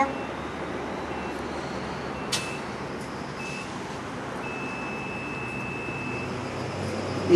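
An electronic control panel beeps in short and long tones.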